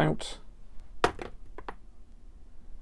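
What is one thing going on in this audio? A die is tossed and clatters briefly across a cardboard tray.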